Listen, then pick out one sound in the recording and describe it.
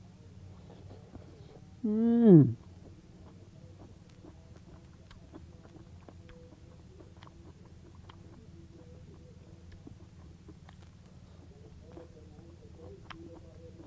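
A young man chews and slurps food.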